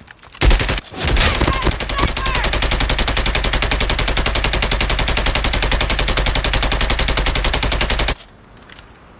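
A rifle fires in a rapid, steady burst, loud and close.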